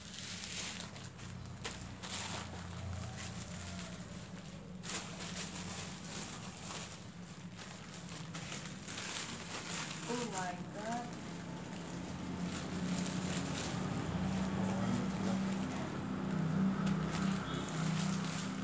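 A thin plastic bag crinkles as it is handled.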